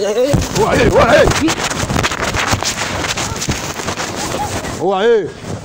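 Men shout loudly outdoors.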